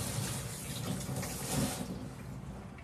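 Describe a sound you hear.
Tap water runs and splashes into a sink.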